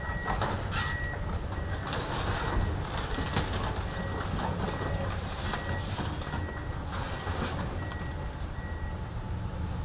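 Debris crashes and clatters as an excavator tears down a building.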